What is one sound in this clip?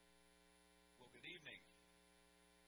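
A man speaks briefly through a loudspeaker in a large echoing hall.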